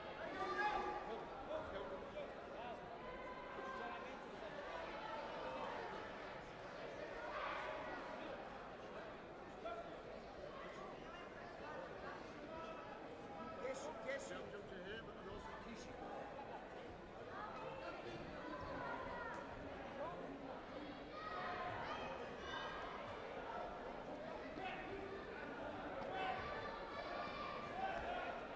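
Many people chatter and call out in a large echoing hall.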